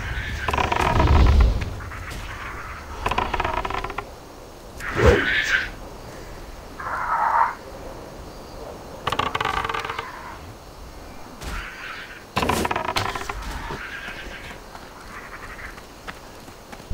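Blades clash and strike in a fight with bursts of noisy impacts.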